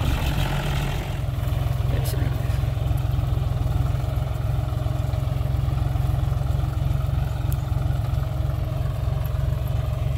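A tractor's tiller scrapes through dry soil.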